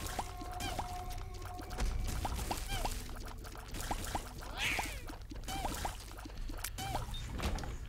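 Small watery shots pop in quick succession.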